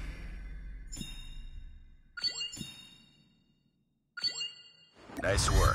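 Bright chimes ring out in short bursts.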